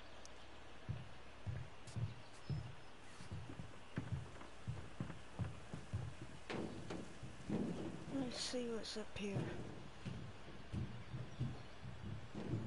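Footsteps thud at a steady pace on hollow wooden boards.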